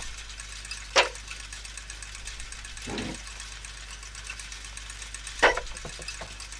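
A metal gear clanks sharply into place.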